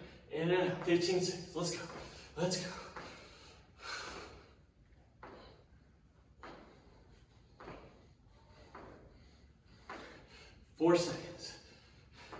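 A young man speaks with energy, close by, in an echoing room.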